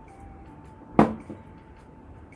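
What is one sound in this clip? Something knocks sharply on a table.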